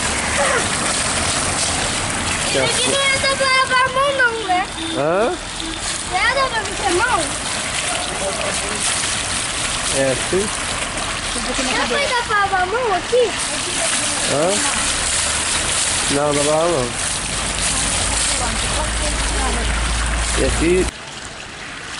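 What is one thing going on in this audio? A fountain splashes steadily close by.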